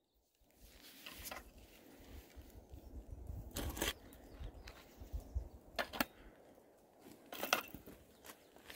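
Footsteps crunch and scrape on a rocky trail close by.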